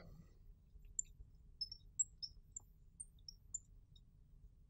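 A marker squeaks faintly as it writes on a glass board.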